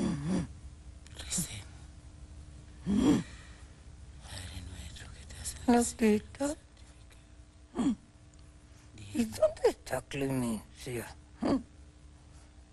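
An elderly woman speaks softly and gently, close by, with pauses.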